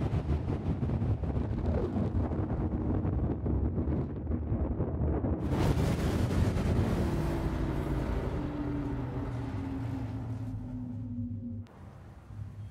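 A spaceship roars with a deep rumble as it rushes through space, then slows down.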